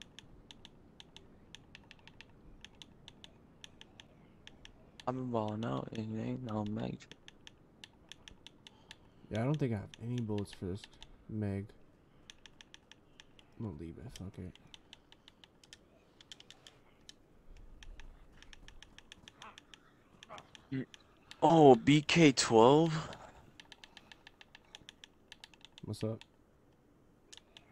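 Soft menu clicks tick quickly in a row.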